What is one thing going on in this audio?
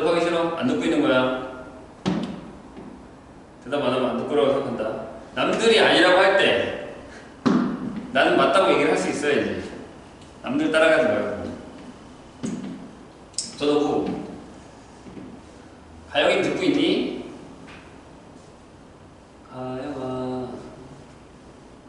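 A young man speaks with animation in a room with a slight echo, pausing between phrases.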